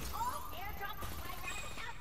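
Rapid gunshots rattle from a rifle.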